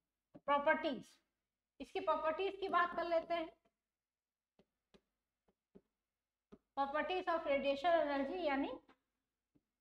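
A young woman speaks clearly into a close microphone, in short bursts with pauses.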